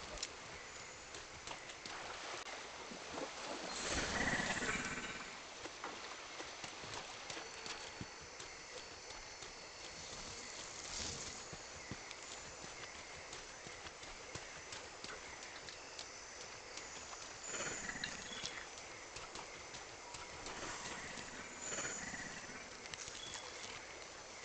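Footsteps crunch steadily over rough ground.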